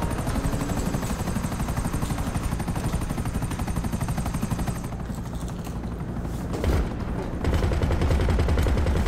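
Helicopter rotor blades chop rapidly and steadily.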